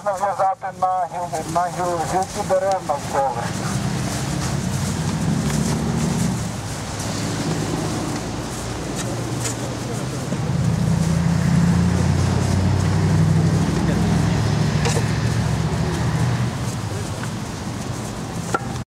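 Low wind rumbles outdoors.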